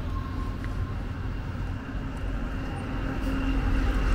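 Traffic rumbles along a nearby street.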